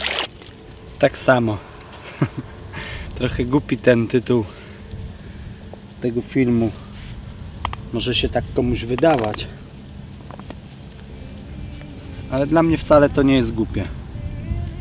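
A man talks calmly and close by, outdoors.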